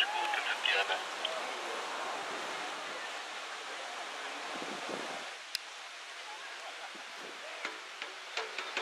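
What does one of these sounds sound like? Young players shout to each other across an open outdoor field.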